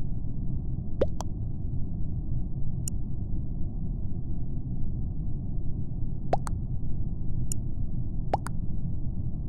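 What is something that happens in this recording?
A short electronic blip sounds as each new chat message pops up.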